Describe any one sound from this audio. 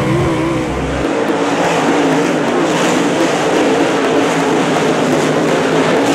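Several race car engines roar at a distance as the cars speed around a track.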